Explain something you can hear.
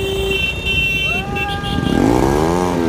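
Another motorcycle engine roars and rises in pitch as it approaches.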